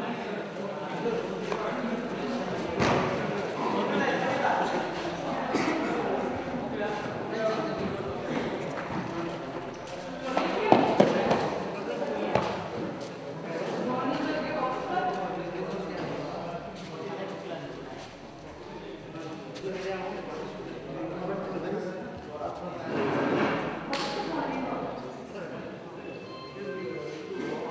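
Gymnastic rings creak and rattle as a gymnast swings.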